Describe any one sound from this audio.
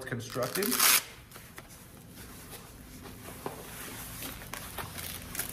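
Fabric rustles and thumps as a vest is handled.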